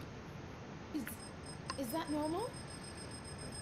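A young woman speaks into a microphone.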